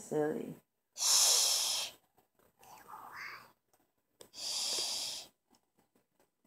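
A little girl laughs close to the microphone.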